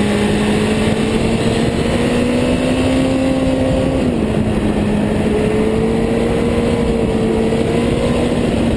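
A motorcycle engine roars steadily at high revs, shifting pitch as it leans through turns.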